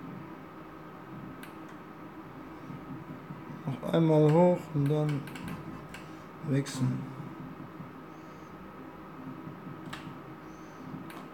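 A slot machine clicks as its reels spin and stop.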